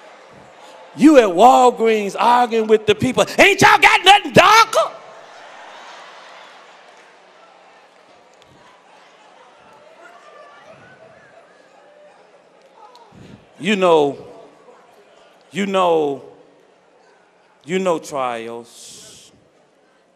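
A man preaches loudly and with passion through a microphone, in a large echoing hall.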